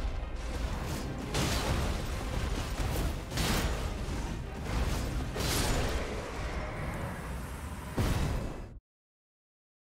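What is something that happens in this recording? A heavy creature thuds and crashes in a loud battle.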